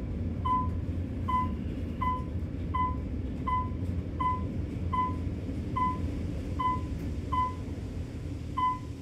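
An elevator hums steadily as it rises.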